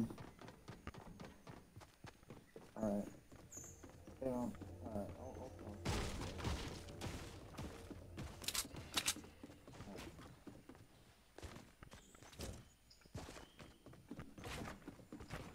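Footsteps clatter quickly on wooden boards.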